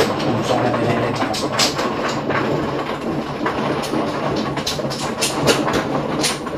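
Plastic mahjong tiles click and clack as hands shuffle and push them across a table.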